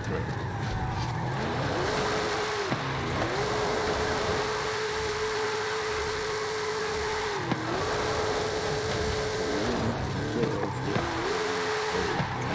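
A car engine revs hard, rising and falling as it shifts gears.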